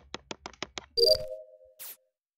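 A short electronic chime sounds.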